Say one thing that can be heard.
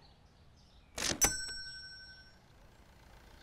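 A card payment terminal rings out a bright chime.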